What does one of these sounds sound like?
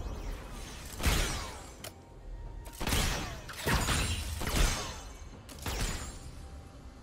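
Spell effects whoosh and burst in quick bursts.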